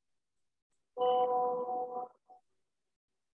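An elderly woman speaks briefly over an online call.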